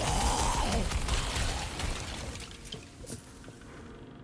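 Electric sparks crackle and zap.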